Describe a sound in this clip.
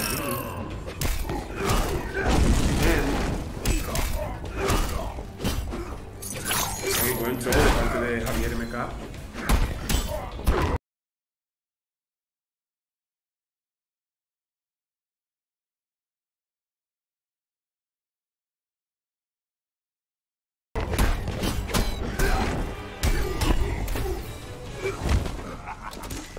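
Punches and kicks thud and crack in quick succession.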